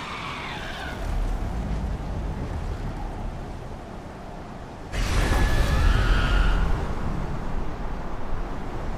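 A deep rumble booms.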